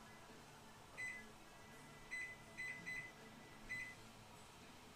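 A microwave beeps several times.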